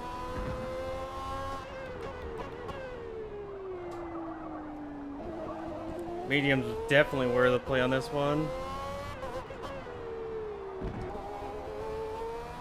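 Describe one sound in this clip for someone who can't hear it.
A racing car engine revs high, drops as the car slows, then climbs again through the gears.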